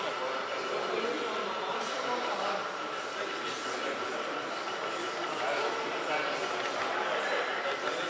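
A model train rumbles along the track, drawing closer.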